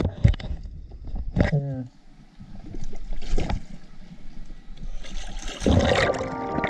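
Water splashes close by.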